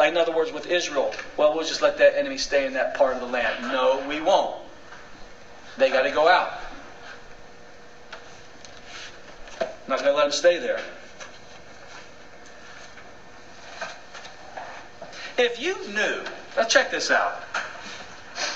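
A middle-aged man lectures with animation in a room with a slight echo, pausing now and then.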